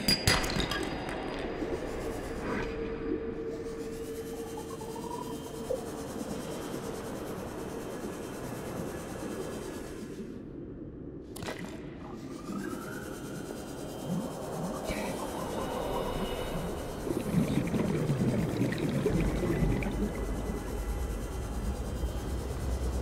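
Water gurgles and rushes in a muffled way, as if heard underwater.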